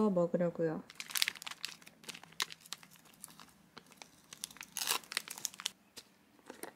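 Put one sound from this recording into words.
A thin plastic bag crinkles as hands peel it open.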